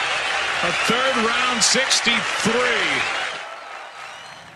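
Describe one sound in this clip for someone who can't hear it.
A large outdoor crowd cheers and applauds loudly, then fades.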